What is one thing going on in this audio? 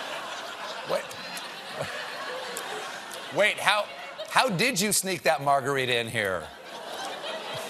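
A middle-aged man laughs and talks loudly.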